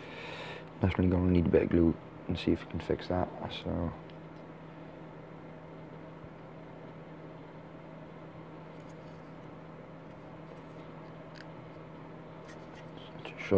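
Small plastic parts click and tap softly as they are handled.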